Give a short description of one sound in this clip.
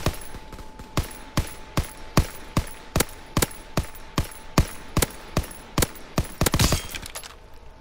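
A rifle fires single shots in a steady rhythm.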